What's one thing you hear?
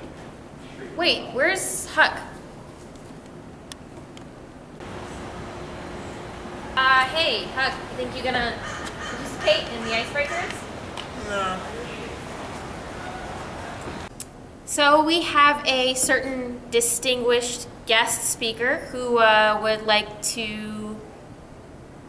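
A young woman speaks with animation into a microphone in a room.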